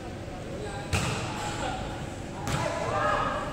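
A volleyball is struck by hand with a sharp slap.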